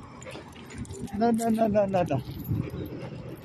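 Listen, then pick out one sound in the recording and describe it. A small dog whines close by.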